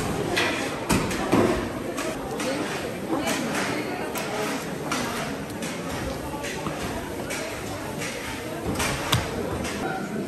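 A cleaver chops into meat and bone with sharp thuds.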